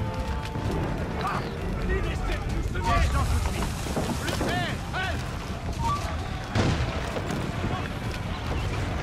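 A large fire roars and crackles nearby.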